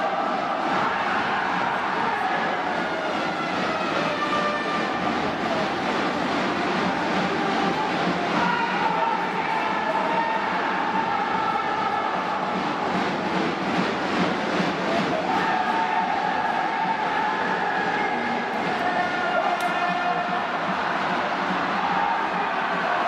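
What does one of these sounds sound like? Brass instruments play a rousing fight song.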